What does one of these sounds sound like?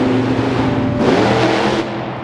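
Metal crunches as a monster truck drives onto a crushed car.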